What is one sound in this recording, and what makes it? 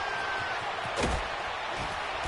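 Football players collide with a heavy thud.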